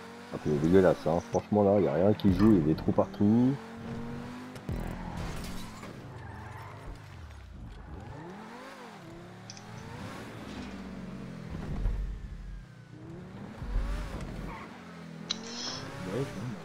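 A car engine revs and roars as a sports car races.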